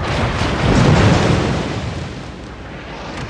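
Heavy ship guns fire with a deep, rumbling boom.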